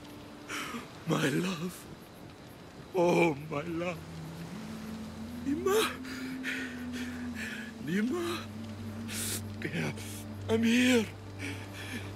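A man speaks in a broken, tearful voice close by.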